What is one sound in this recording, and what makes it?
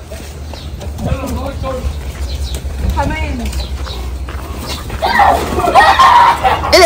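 Adults talk and call out nearby, growing louder toward the end.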